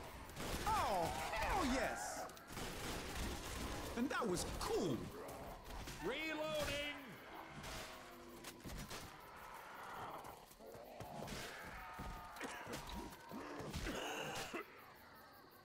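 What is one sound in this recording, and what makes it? A blade swishes and thuds into bodies again and again.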